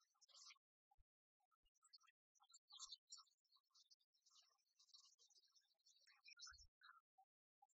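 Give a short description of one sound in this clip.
Game pieces click on a wooden table.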